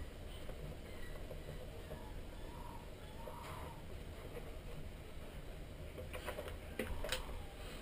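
A small screwdriver turns a screw with faint scraping clicks.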